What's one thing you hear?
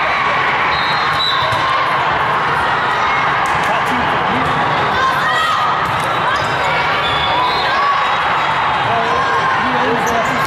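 Shoes squeak sharply on a hard court floor.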